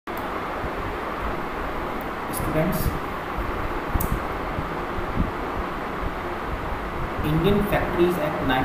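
A man speaks calmly into a microphone, lecturing.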